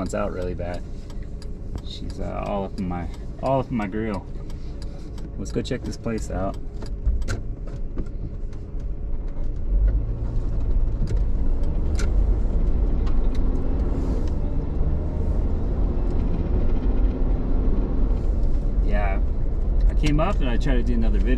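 A car engine hums and tyres rumble steadily on the road, growing louder partway through.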